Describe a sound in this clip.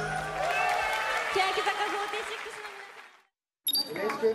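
A chorus of young women sings over loud pop music that then fades out.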